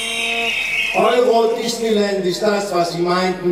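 A second man sings loudly and with animation.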